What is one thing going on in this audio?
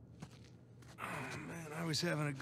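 A young man groans and answers wearily.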